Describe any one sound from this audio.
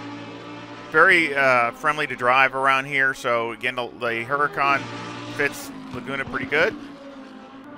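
A racing car engine snarls and pops loudly as it slows for a bend.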